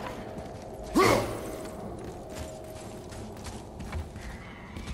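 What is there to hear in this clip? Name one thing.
A giant creature roars.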